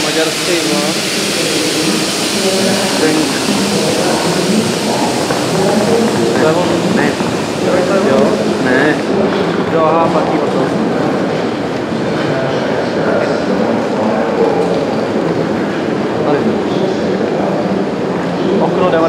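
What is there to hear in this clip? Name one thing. Many people talk in a large echoing hall, a steady murmur of voices.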